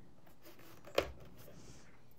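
A small plastic plug clicks into a socket.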